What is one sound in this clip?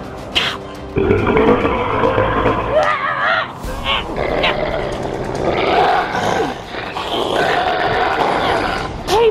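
A young woman screams and shrieks close by.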